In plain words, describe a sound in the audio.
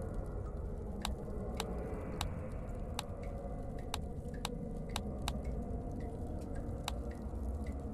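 Sharp game clicks sound as puzzle pieces snap into place.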